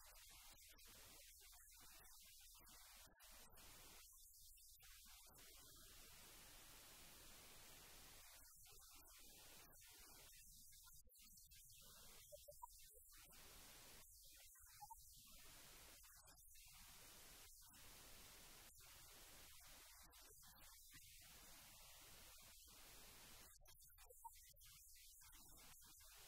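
A woman speaks softly and calmly nearby.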